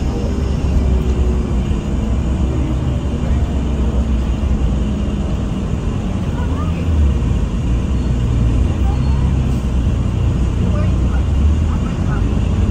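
A bus engine rumbles steadily while driving along a street.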